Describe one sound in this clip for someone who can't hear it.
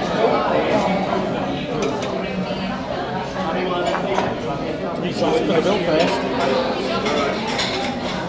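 A crowd chatters in a busy, echoing room.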